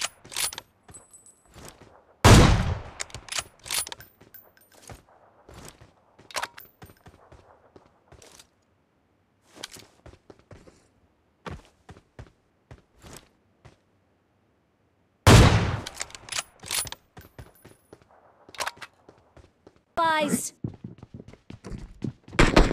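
Footsteps tap quickly on a hard floor.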